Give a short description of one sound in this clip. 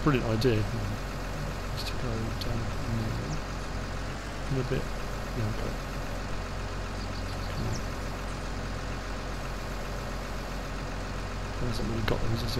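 A heavy diesel engine idles and rumbles steadily.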